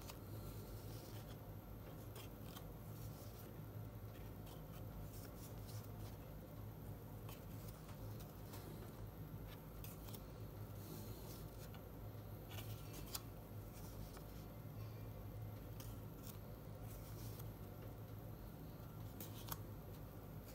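Cards slide and flick against each other as they are sorted by hand.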